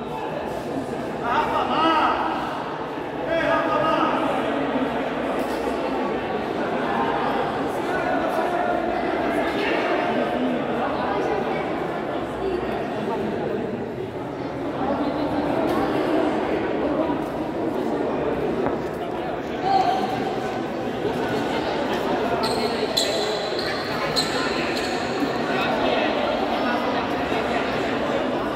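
A crowd of spectators chatters and calls out, echoing in a large hall.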